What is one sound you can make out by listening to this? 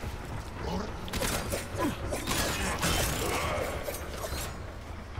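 A blade clashes against an armoured enemy with metallic hits.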